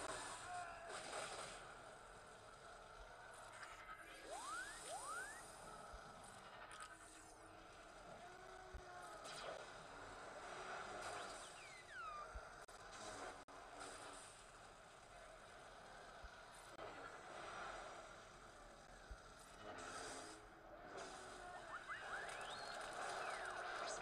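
Lightsabers clash and crackle in a fight.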